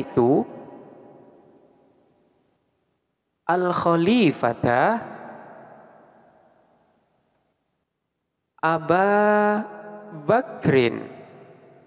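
A man speaks calmly into a microphone, in a room with a long echo.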